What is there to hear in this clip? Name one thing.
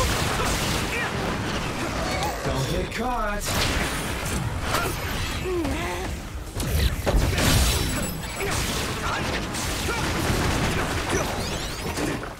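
Sword slashes whoosh and clang in a fast fight.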